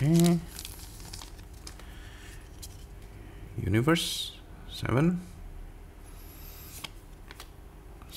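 Trading cards slide against each other.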